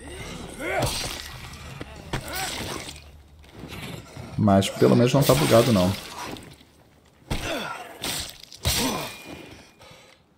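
Heavy blows thud against a body in quick strikes.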